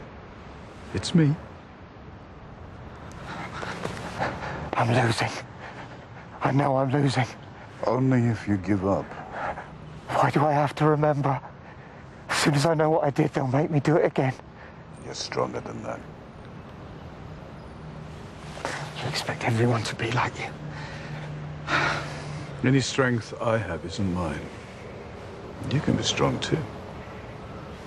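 A man speaks with strained emotion, close by.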